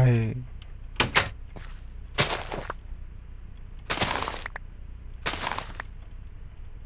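Plants are broken off with short, crunchy rustles.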